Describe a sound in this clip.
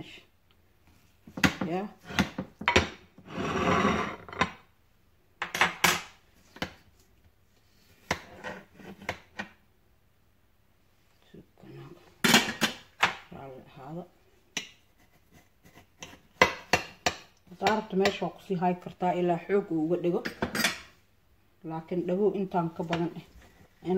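A metal spoon scrapes and clinks against a glass dish.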